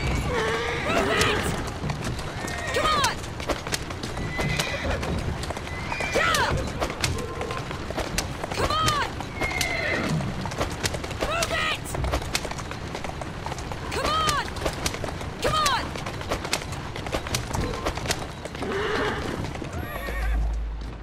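Carriage wheels rattle and rumble over cobbles.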